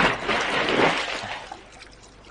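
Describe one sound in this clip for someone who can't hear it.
Water splashes loudly close by.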